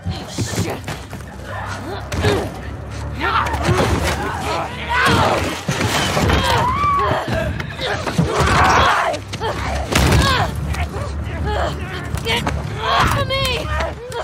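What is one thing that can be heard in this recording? A young woman cries out and shouts in panic.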